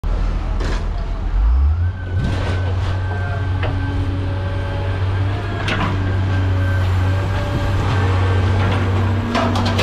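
Scrap metal clanks and bangs now and then.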